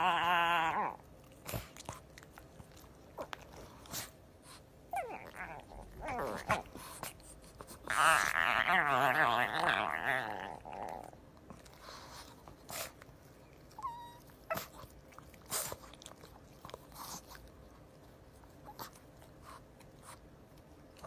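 A dog snuffles and snorts up close.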